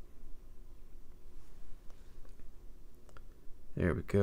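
Small plastic parts click and tap as a device is handled.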